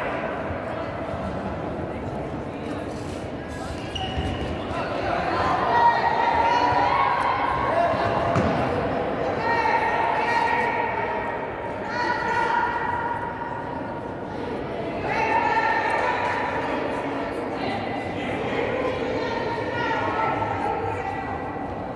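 A crowd of spectators shouts and cheers in a large echoing hall.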